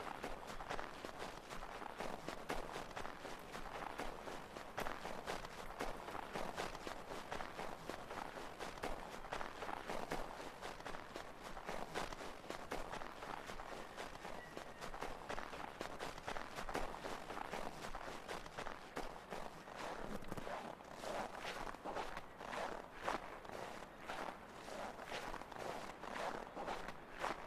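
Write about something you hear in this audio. Footsteps crunch quickly through deep snow.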